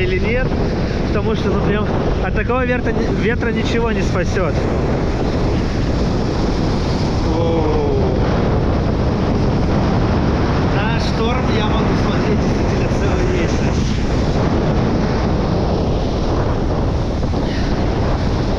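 Wind blusters loudly outdoors.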